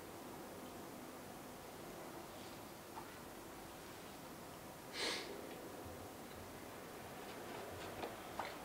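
Paper rustles softly as cards are handled.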